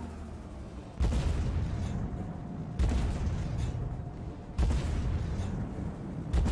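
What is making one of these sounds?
Tank cannon shots boom loudly several times.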